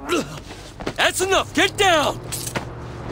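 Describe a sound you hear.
A man grunts and groans with effort.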